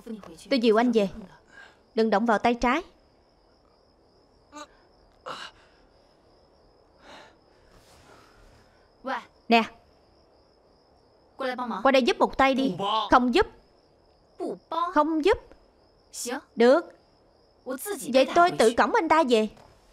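A young woman speaks tensely and with emotion, close by.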